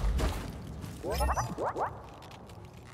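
A small robot chirps with quick rising beeps.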